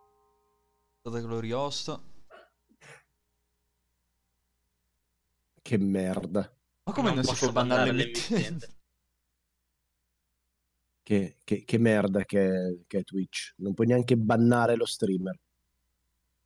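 A young man speaks with animation, close to a microphone, in short bursts.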